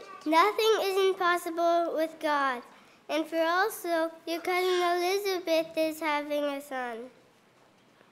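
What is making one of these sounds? A young boy sings loudly through a microphone in an echoing hall.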